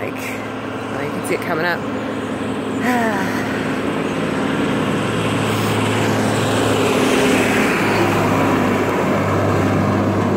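Traffic roars steadily past on a nearby road.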